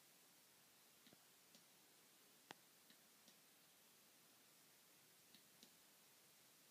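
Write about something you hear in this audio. A toddler taps lightly on a hard panel.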